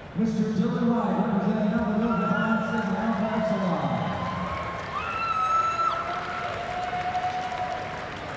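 A large crowd murmurs softly in a big echoing arena.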